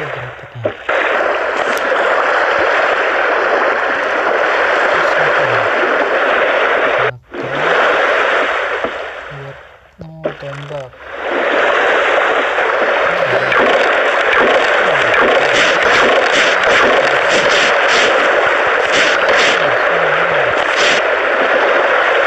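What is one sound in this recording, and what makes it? Ocean waves wash steadily around a raft.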